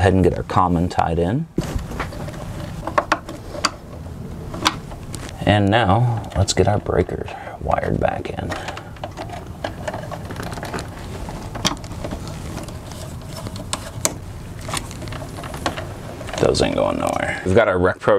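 Wires rustle and click against a metal panel.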